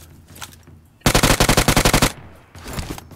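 Rapid gunfire rattles in a short, fast burst.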